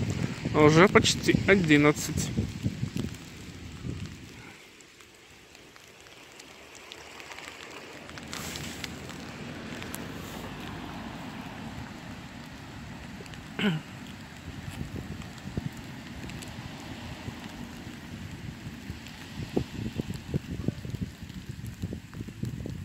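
Light rain patters steadily outdoors.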